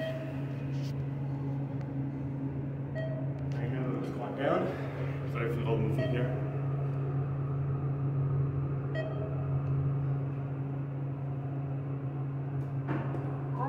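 An elevator hums steadily as it travels.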